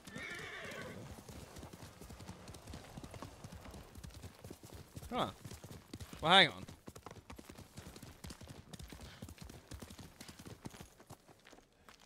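A horse gallops with quick hoofbeats on soft ground.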